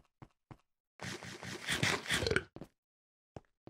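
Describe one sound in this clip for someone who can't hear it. Loud munching and crunching of food.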